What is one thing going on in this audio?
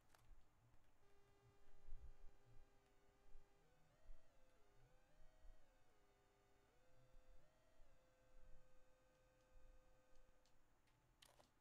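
An electronic tone hums steadily and shifts up and down in pitch.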